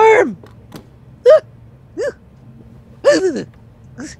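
A briefcase latch clicks open.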